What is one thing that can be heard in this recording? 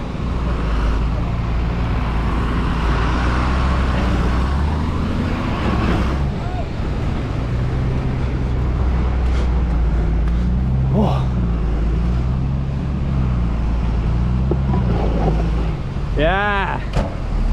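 Tyres grind over loose rocks and gravel.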